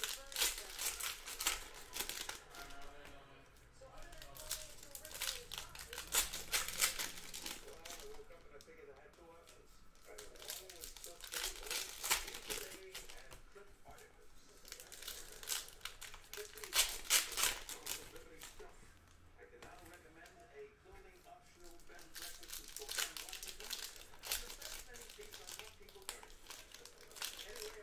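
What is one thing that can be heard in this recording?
Foil wrappers crinkle and tear open in bursts.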